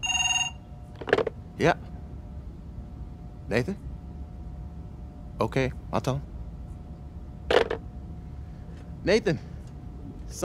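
A man speaks calmly into a phone in short phrases.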